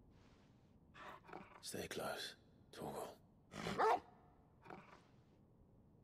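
A young man speaks quietly and close by.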